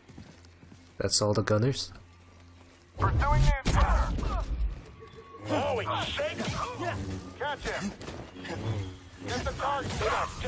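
A lightsaber clashes with sharp crackling hits.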